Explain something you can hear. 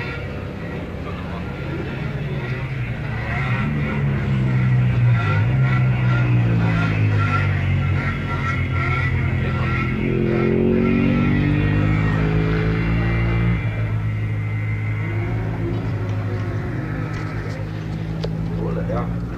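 A small motorcycle engine runs loudly close by, revving up and down.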